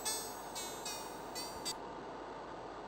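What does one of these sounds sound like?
Short electronic tones chirp in quick succession.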